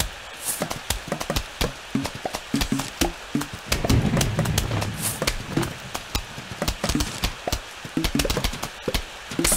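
Quick popping and thudding game effects sound in rapid succession.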